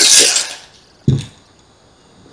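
A bowl is set down on a table with a light knock.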